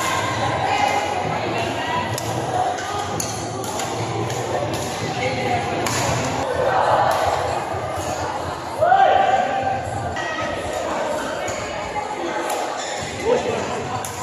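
A crowd of men and women chatter in the background.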